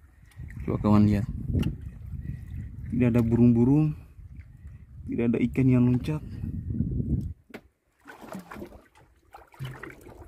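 Small waves slosh and lap nearby.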